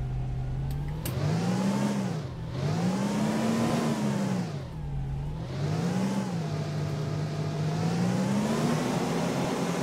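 A bus engine revs up and down repeatedly as the bus pulls away.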